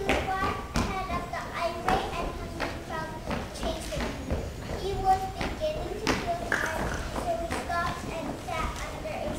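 A young girl reads a story aloud in a high, clear voice, heard from a short distance in a room that echoes a little.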